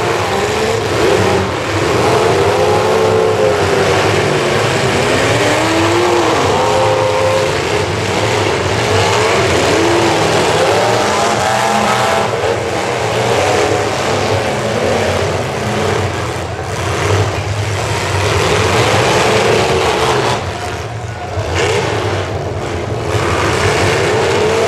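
Car engines roar and rev loudly outdoors.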